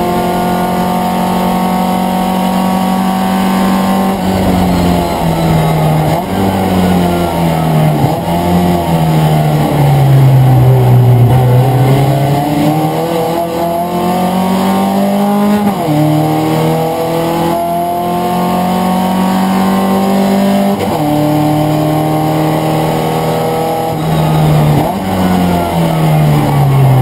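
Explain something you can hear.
A racing car engine roars loudly from inside the cabin, its pitch rising and falling sharply with gear changes.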